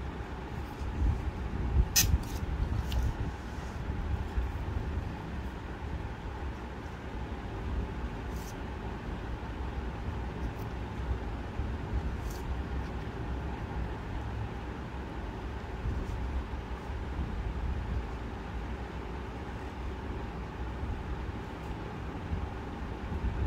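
A reed pen scratches softly across paper.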